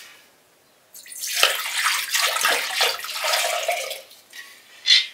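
Water pours from a clay jug into a glass bowl.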